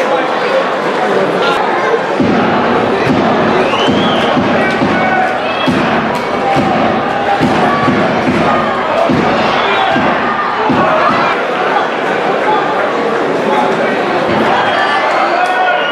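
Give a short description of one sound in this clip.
Young men shout to each other on an open pitch, heard from a distance.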